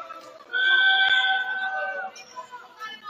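A referee's whistle blows a long shrill blast.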